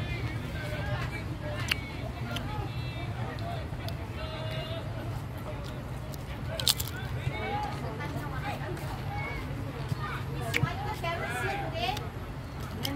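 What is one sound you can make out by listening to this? Children shout and chatter nearby outdoors.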